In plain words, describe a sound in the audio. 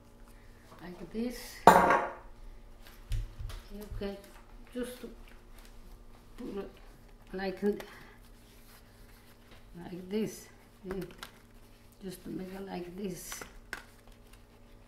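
An elderly woman speaks calmly and close by.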